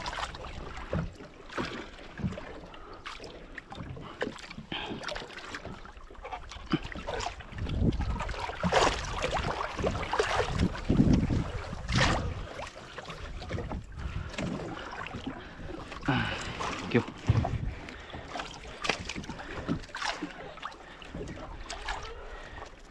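Water splashes against the side of a boat as a large fish thrashes.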